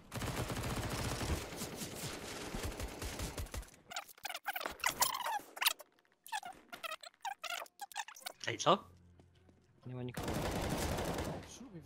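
Gunfire bursts in rapid shots.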